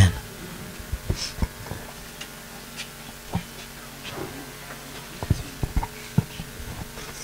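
A microphone thumps and knocks as it is handed over.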